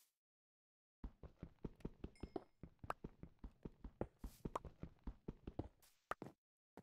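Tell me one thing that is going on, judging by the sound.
A pickaxe chips rapidly at stone, with blocks cracking apart.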